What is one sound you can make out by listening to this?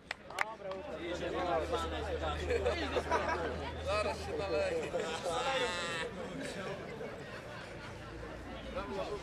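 Several men talk and cheer outdoors.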